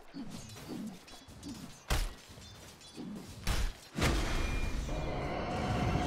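Magic spells burst and crackle in a video game battle.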